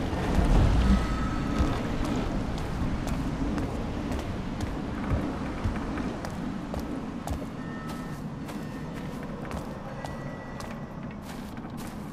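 Footsteps tread slowly on stone steps and ground.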